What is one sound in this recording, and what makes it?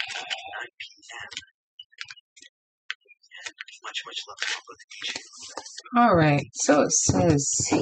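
Paper rustles as a sheet is unfolded.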